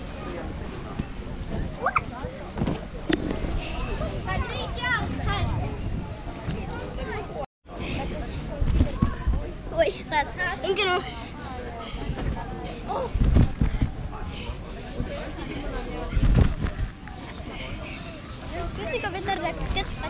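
Children shout and squeal playfully outdoors.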